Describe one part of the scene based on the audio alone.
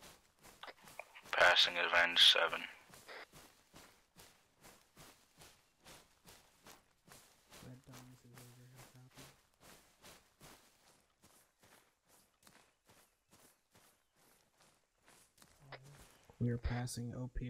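Footsteps crunch steadily through dry grass and undergrowth.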